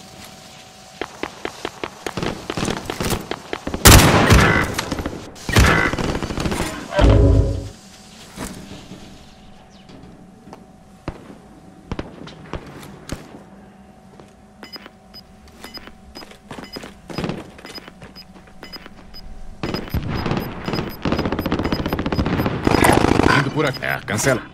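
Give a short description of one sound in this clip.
A scoped rifle fires in rapid bursts.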